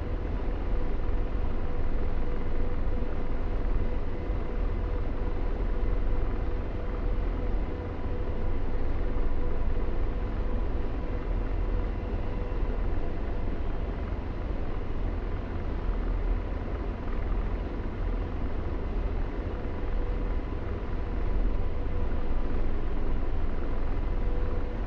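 A jet engine roars steadily with a low rumble and a faint high whine.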